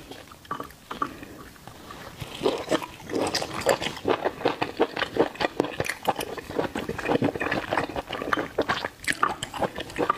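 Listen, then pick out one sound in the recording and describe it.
A woman chews food wetly and noisily close to a microphone.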